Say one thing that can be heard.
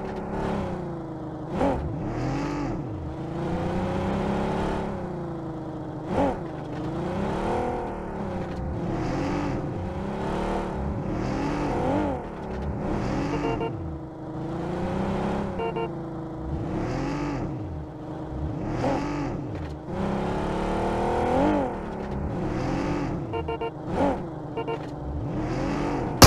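A car engine revs up and down as the car drives over rough ground.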